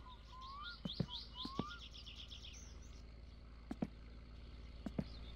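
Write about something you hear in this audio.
Footsteps thud on gravel.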